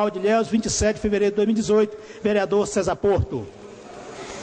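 A man speaks through a microphone in a large echoing room.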